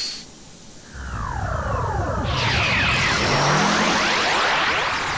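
A surge of energy roars and crackles loudly.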